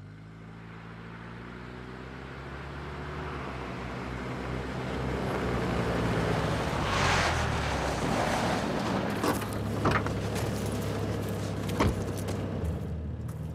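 A car engine rumbles as it drives closer along a dirt track.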